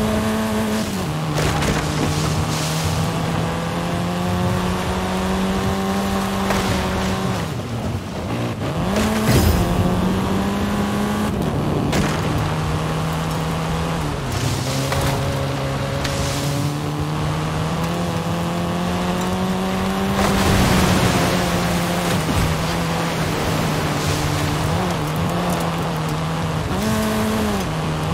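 A car engine hums steadily, shifting gears as it speeds up and slows.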